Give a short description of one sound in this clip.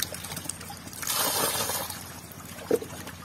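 Catfish splash into a pond.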